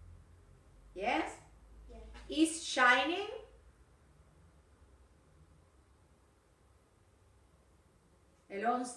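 A woman speaks calmly and clearly close by, in short phrases with pauses.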